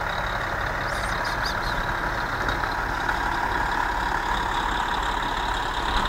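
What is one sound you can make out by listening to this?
A truck engine idles nearby with a steady hum.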